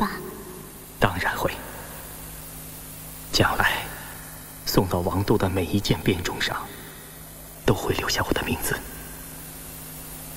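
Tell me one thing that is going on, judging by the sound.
A man answers in a warm, measured voice, close by.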